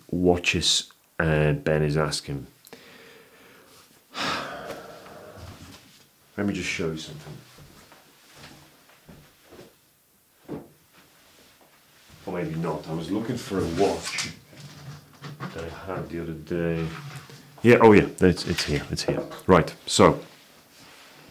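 A man talks calmly and close to a microphone, sometimes from farther off in the room.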